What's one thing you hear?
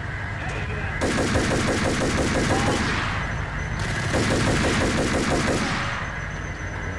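A pistol fires in rapid bursts of shots, echoing.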